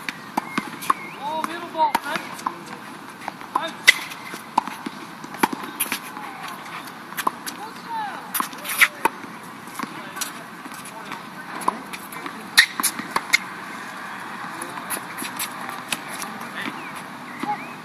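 Tennis balls pop off rackets in a steady rally outdoors.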